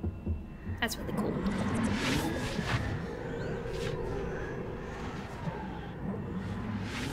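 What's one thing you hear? A young woman speaks into a nearby headset microphone.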